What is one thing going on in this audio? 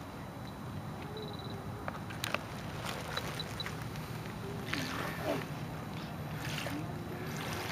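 A small electric boat motor whirs softly on the water.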